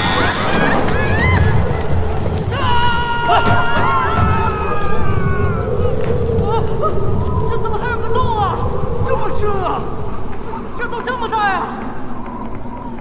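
A crowd of people scream and shout in panic.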